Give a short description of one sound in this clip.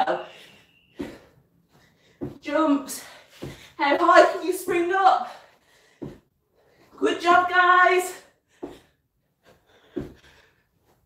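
Feet thump on the floor as a woman jumps.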